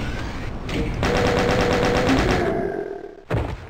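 A machine gun fires a rapid burst of shots.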